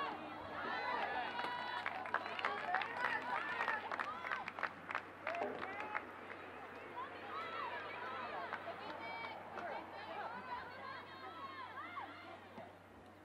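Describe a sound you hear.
Young women shout and call out to each other across an open outdoor field.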